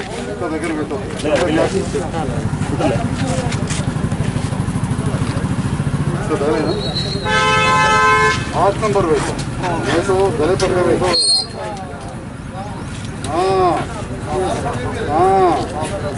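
Several men talk nearby in a lively group.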